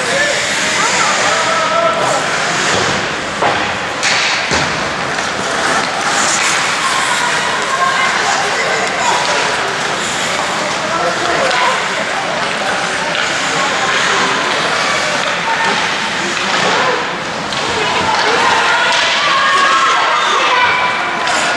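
Young men shout across the rink.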